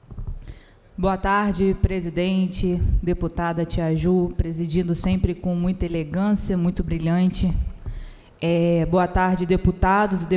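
A woman speaks with animation into a microphone in a large echoing hall.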